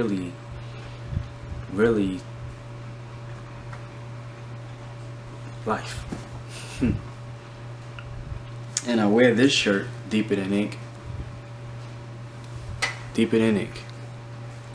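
A young man speaks calmly and close by, in short bursts.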